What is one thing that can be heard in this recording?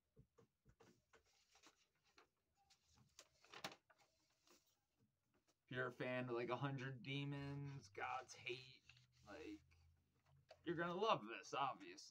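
Record sleeves rustle and slide as they are handled.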